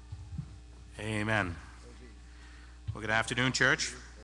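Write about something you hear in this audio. A man speaks slowly and emphatically into a microphone.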